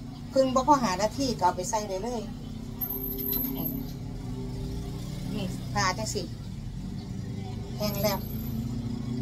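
An older woman talks nearby.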